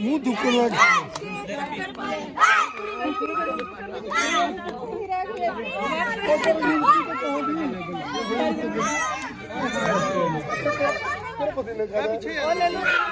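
A group of women and children sing and cheer loudly close by.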